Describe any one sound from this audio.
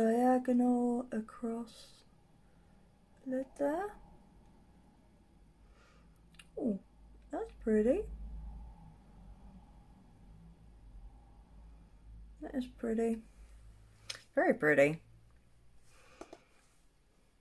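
A young woman talks calmly and close by, in short phrases with pauses.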